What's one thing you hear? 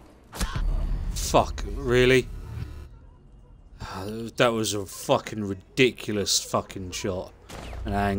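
A man talks with animation into a nearby microphone.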